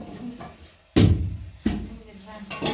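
A large wooden board knocks against the floor.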